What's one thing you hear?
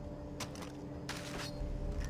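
Leaves rustle as a plant is plucked.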